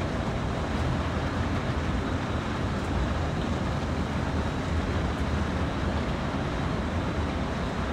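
Train wheels roll and rattle along the track.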